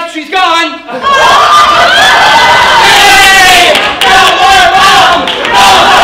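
Young people shout and cheer loudly.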